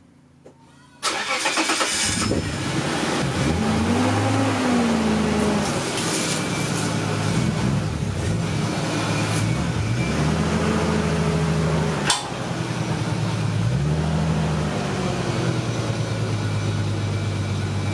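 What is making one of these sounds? A car engine rumbles and revs as the car rolls slowly closer.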